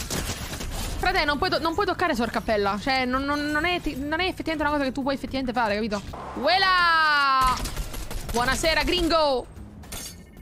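A young woman talks animatedly into a close microphone.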